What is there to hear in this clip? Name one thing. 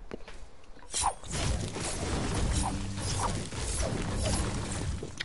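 A pickaxe strikes stone with sharp knocks.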